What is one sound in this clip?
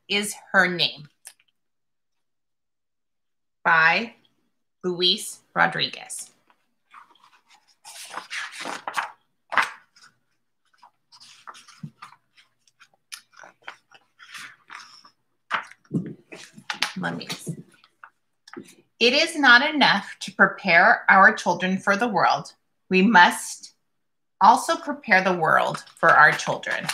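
A woman speaks calmly and clearly close to a microphone, as if reading aloud.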